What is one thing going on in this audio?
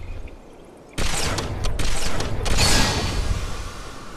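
A rifle fires with a sharp crack and a ringing blast.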